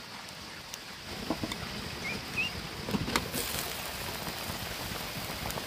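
Water boils and bubbles in a pan.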